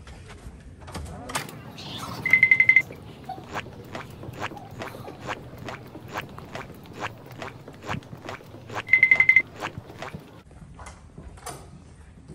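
Footsteps tap along a hard floor at a steady walking pace.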